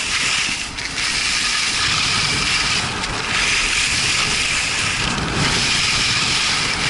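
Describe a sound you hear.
Skis hiss and scrape over hard snow.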